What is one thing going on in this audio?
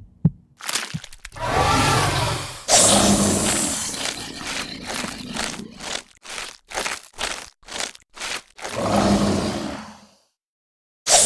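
A cartoon game monster growls and roars.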